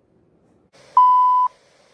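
A steady high test tone beeps.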